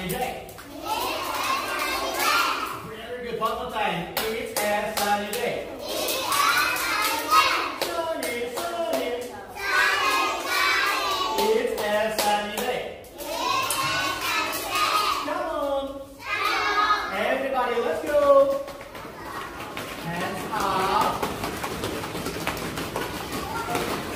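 A group of young children sing together in chorus.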